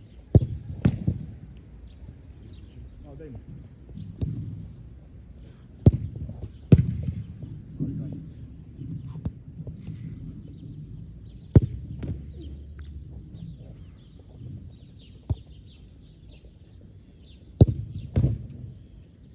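A goalkeeper dives and lands on the grass with a thud.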